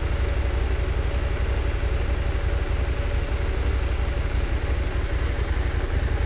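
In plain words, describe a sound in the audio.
A motorcycle engine idles with a low, steady throb.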